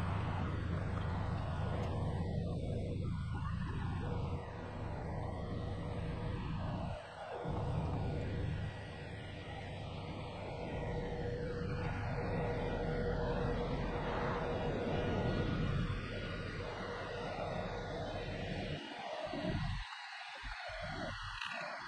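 A large ship's engine rumbles low and steadily as the ship glides past.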